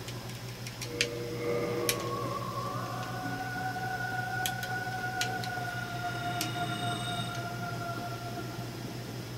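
Music with long, held notes begins and plays steadily.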